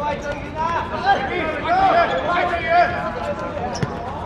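Young men shout to each other during a football game.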